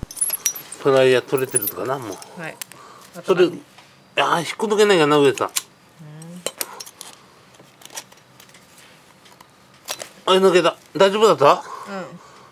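Pliers click and scrape against a small metal fitting.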